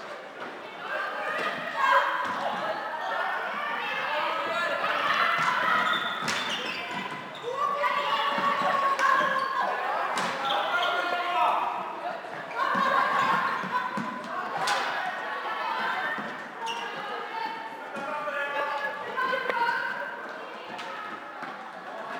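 Plastic sticks clack against a ball in a large echoing hall.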